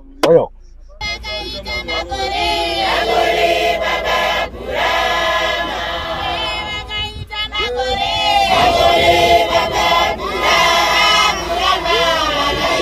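A choir of women sings together outdoors.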